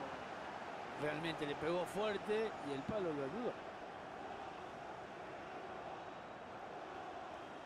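A large crowd murmurs steadily in a stadium.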